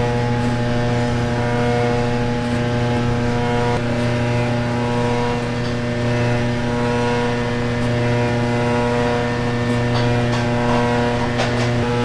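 A machine hums steadily and loudly.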